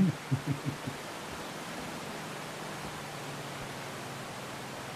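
A river rushes over rocks.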